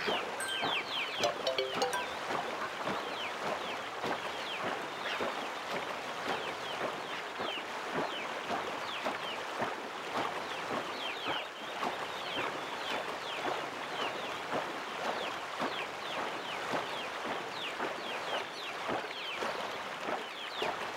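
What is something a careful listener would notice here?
A paddle splashes rhythmically through water.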